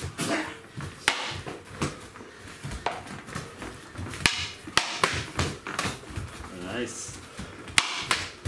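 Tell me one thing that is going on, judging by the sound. Bare feet shuffle and thud on a mat.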